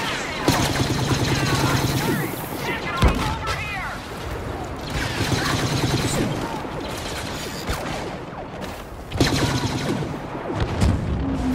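Laser guns fire in rapid, buzzing bursts.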